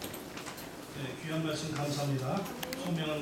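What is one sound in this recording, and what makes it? An elderly man speaks calmly into a microphone, heard over loudspeakers in a large room.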